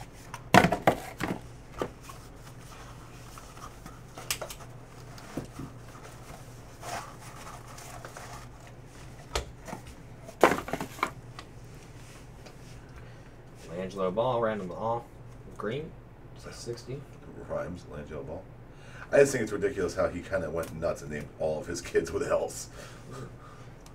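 Hard plastic card cases click and clack as they are handled.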